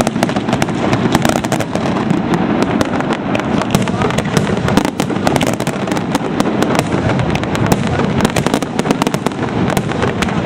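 Fireworks rumble deeply.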